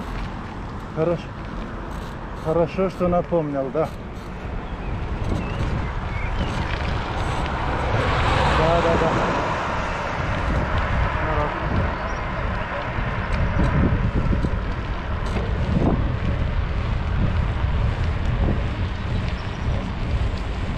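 Tyres roll over asphalt.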